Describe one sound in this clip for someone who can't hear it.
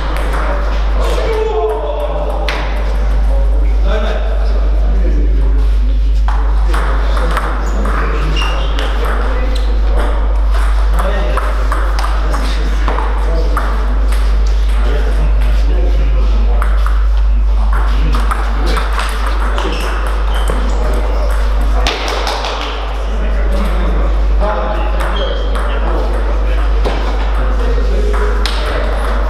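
Men chatter in the background.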